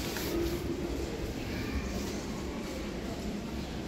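An elevator car hums and rumbles steadily as it moves.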